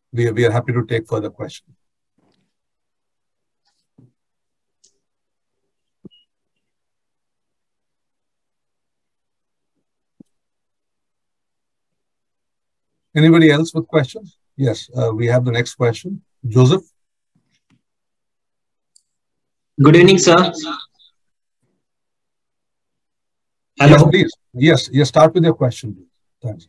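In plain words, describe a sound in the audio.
A middle-aged man speaks calmly over an online call, with long pauses.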